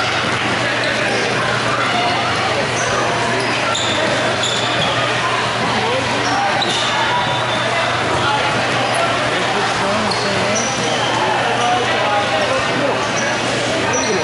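Spectators talk and call out across an echoing hall.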